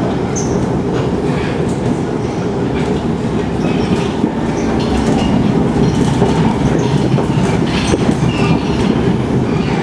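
A subway train rumbles along the tracks with a steady low roar.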